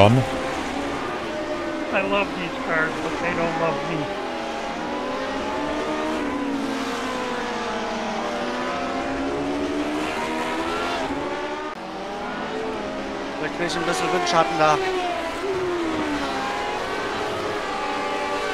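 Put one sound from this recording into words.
Racing car engines whine and rise and fall in pitch as they change gears.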